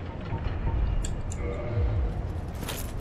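Metal armour clanks as a knight moves.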